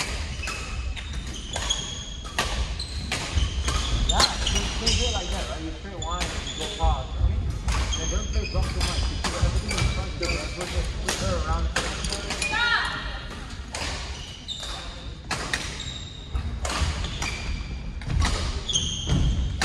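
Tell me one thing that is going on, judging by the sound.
Shuttlecocks are struck with sharp, quick pops of rackets, over and over, in a large echoing hall.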